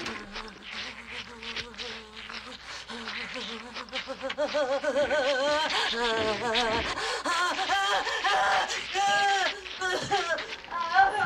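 An elderly woman wails with a wavering voice.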